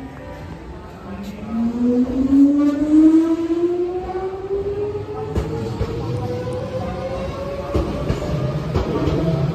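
An electric train's motor whines and rises in pitch as the train pulls away.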